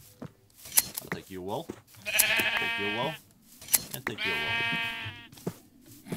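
A sheep bleats.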